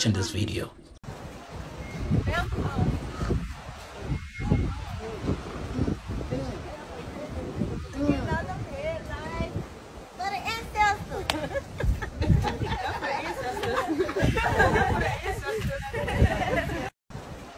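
Young women laugh and chatter outdoors.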